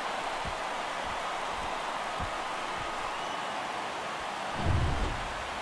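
A large crowd cheers loudly, heard as a steady roar.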